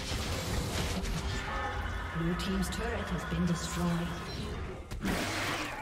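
Game combat sound effects whoosh and crackle.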